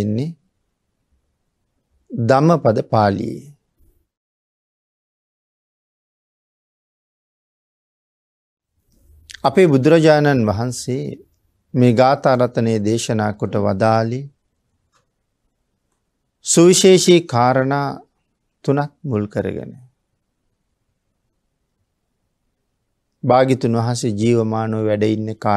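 A man speaks calmly and slowly, with long pauses.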